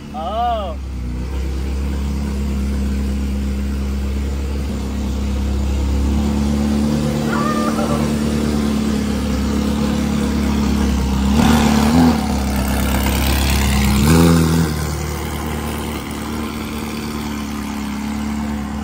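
A sports car engine idles with a deep, steady rumble, in an echoing space.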